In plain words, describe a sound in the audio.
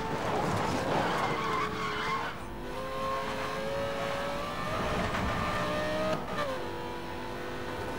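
A sports car engine roars at high revs, its pitch rising and dropping as it shifts gears.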